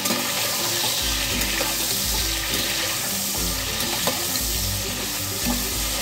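A metal spatula scrapes and clatters against a pot.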